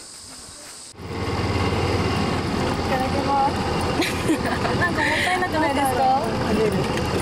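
Young women chat and laugh close by.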